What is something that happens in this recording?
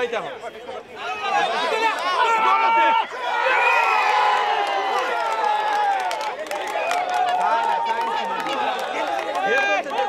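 Men in the crowd shout and cheer loudly.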